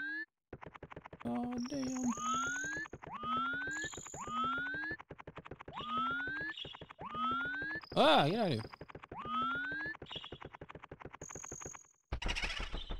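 Quick light footsteps patter rapidly.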